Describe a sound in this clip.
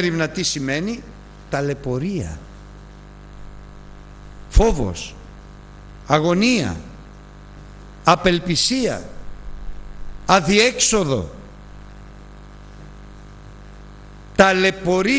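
An elderly man speaks slowly and emphatically through a microphone, with pauses between phrases.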